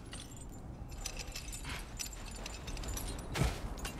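A heavy chain rattles and creaks.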